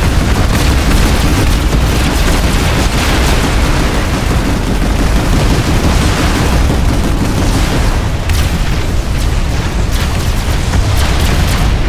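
Heavy vehicle engines rumble.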